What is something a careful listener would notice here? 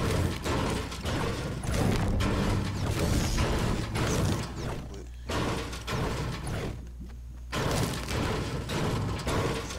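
A pickaxe strikes metal again and again.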